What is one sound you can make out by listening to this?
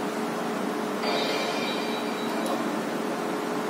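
A slot machine chimes a short bright jingle.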